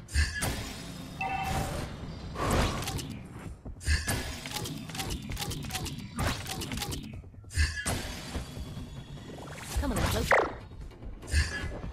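Electronic game sound effects whoosh and clang.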